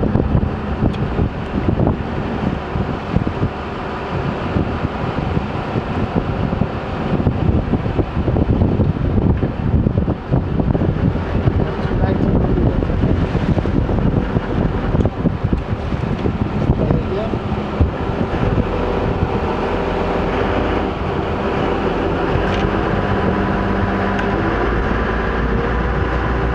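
Wind buffets and rumbles loudly outdoors.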